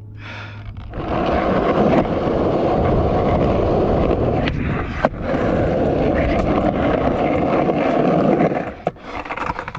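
Skateboard wheels roll on concrete.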